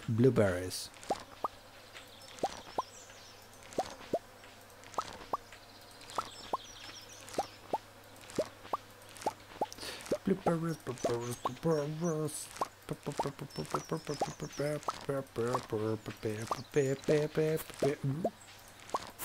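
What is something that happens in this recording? Short soft popping blips repeat as crops are picked.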